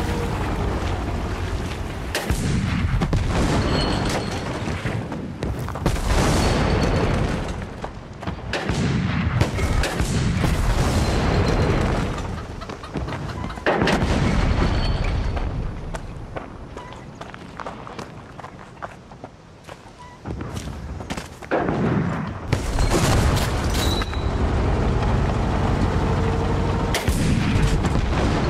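Footsteps run over dirt and wooden boards.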